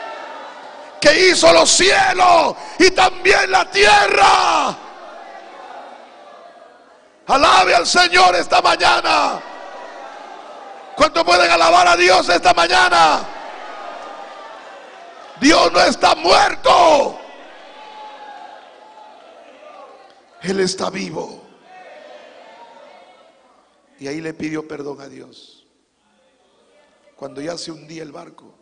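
A man preaches with passion into a microphone, his voice loud and ringing in a reverberant room.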